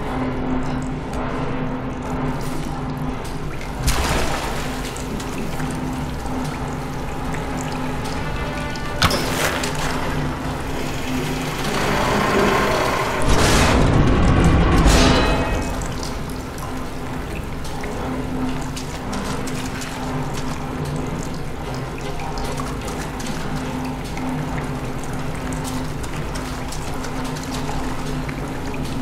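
A steady low mechanical hum drones throughout.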